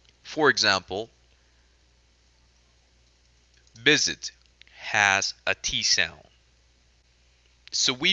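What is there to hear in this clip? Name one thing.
A man speaks slowly and clearly over an online call, pronouncing words one at a time.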